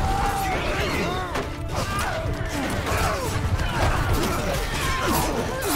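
Metal weapons clash and clang in a large battle.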